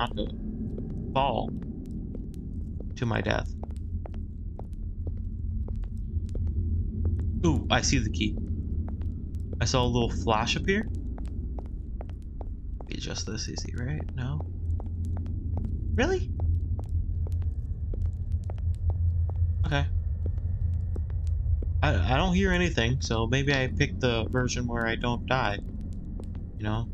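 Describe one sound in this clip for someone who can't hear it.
A torch flame burns with a soft, steady roar.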